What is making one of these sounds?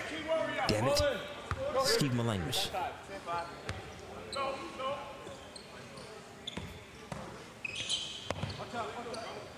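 A basketball bounces on a court floor.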